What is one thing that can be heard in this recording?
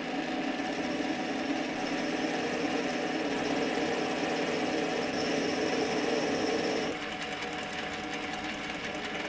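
A lathe hums steadily as it spins.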